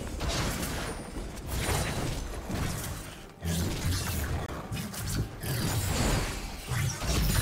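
Game spell effects whoosh and crackle as characters fight.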